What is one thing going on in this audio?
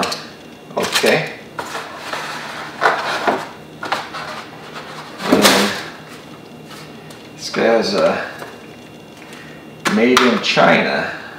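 Plastic parts clack and rattle as they are handled.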